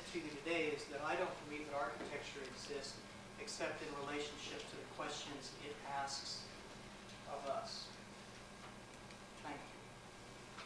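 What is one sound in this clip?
A man speaks to an audience, pausing between phrases.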